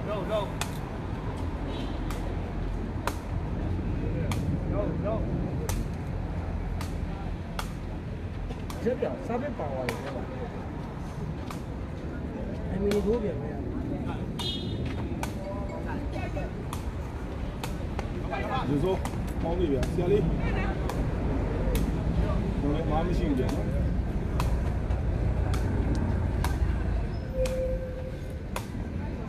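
A ball is kicked with sharp thumps, back and forth.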